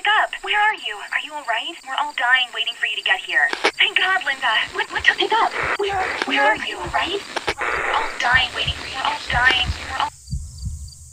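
A young woman speaks through a phone, heard faintly and distorted.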